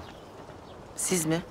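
A woman answers quietly up close.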